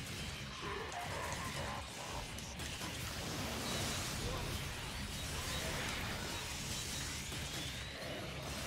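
Flames roar and blasts crash in a fight.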